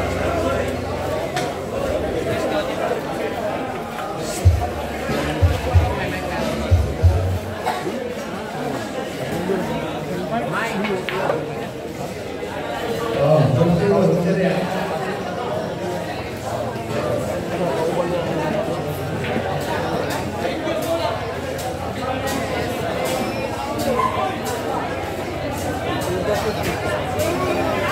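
A crowd of people murmurs and chats nearby.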